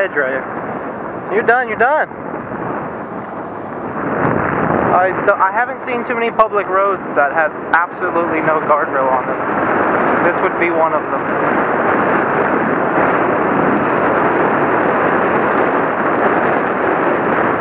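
Wind rushes loudly past the microphone on a moving motorcycle.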